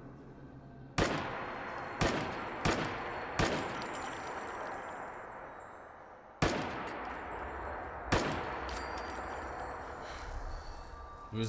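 Rifle shots ring out sharply, each followed by a long echoing rumble.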